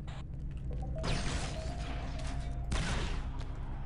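A blaster rifle fires sharp bursts of shots.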